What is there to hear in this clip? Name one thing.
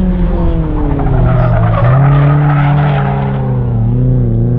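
Tyres squeal on pavement as a car turns sharply.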